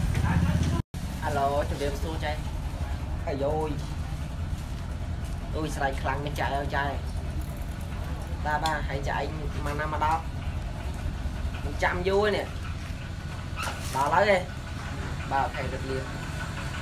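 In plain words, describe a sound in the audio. A teenage boy talks into a phone close by, with animation.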